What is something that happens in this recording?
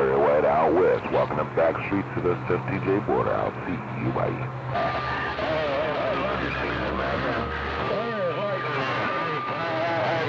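Warbling, gliding tones whine from a radio receiver.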